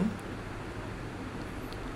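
A pen scratches across paper.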